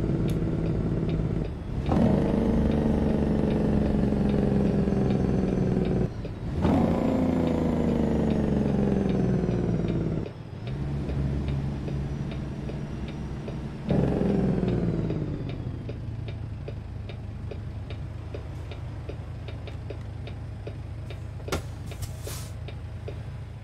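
A truck's diesel engine rumbles steadily, its pitch sinking and then jumping with each gear change.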